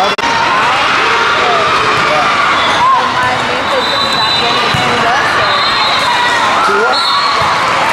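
A large crowd chatters and echoes through a big hall.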